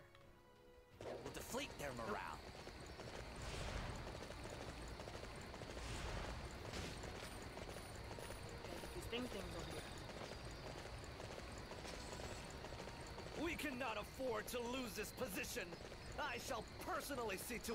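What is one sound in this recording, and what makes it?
A horse gallops over soft ground.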